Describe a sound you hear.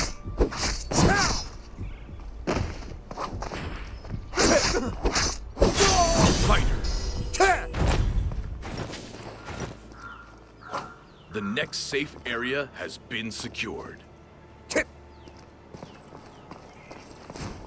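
Blades slash and clash in quick strikes.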